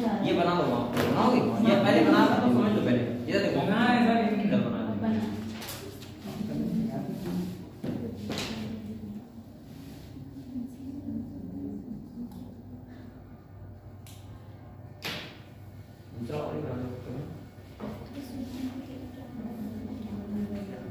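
A young man lectures calmly in a small room with a slight echo.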